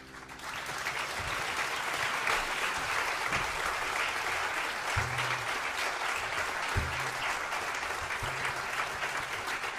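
A jazz band plays live on stage through loudspeakers.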